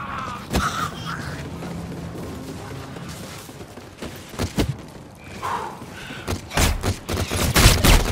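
Laser guns fire in sharp bursts.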